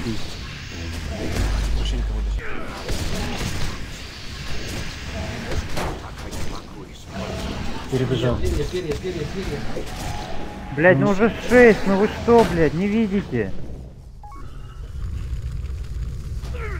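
Spell effects whoosh and crackle during a fight.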